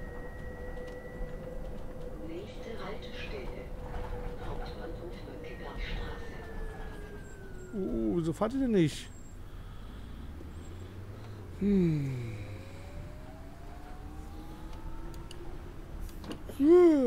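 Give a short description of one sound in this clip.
A bus engine hums and whines steadily, its pitch dropping as it slows and rising as it speeds up.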